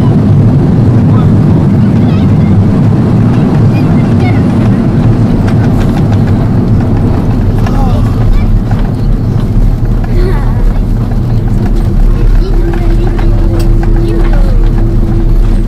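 Wheels rumble on the runway.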